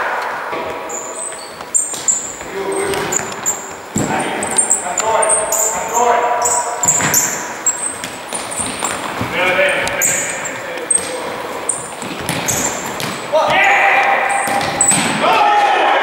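Trainers squeak on a sports hall floor.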